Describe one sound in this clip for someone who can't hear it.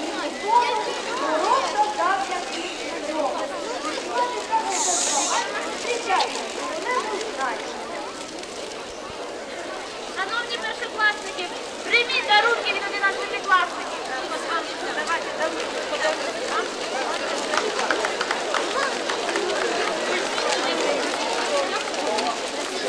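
A large crowd of children and adults chatters outdoors.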